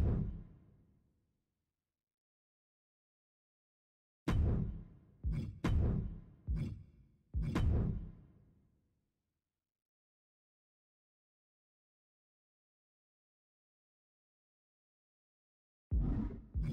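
Short electronic menu sounds ring out and fade with each selection.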